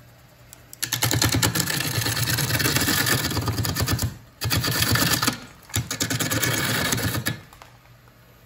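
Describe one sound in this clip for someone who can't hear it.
A gouge scrapes and tears loudly into spinning wood, in bursts.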